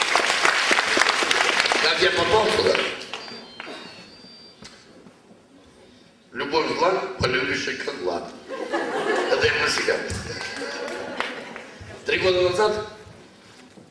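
A middle-aged man speaks animatedly into a microphone in an echoing hall.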